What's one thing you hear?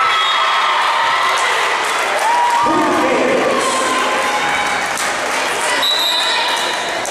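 Young women cheer and shout excitedly in a large echoing gym.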